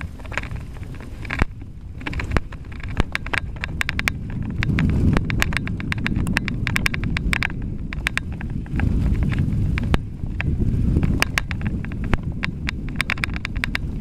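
Bicycle tyres rumble over a bumpy dirt trail.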